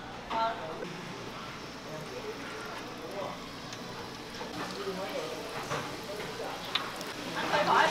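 Hot oil sizzles and bubbles.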